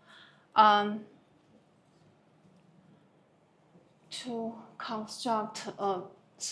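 A woman speaks nearby, explaining calmly.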